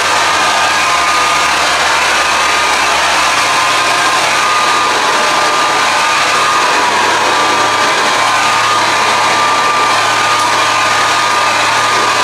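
A hair dryer blows with a loud, steady whirring roar.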